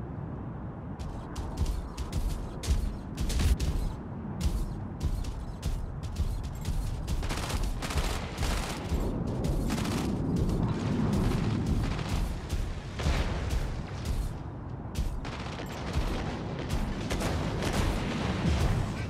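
Heavy metal footsteps clank and thud in a steady rhythm.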